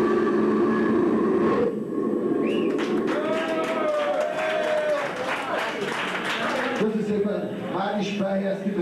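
A live rock band plays loudly in a room with echo.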